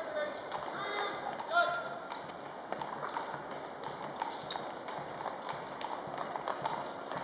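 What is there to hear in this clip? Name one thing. Horses shift their hooves on pavement with occasional clops.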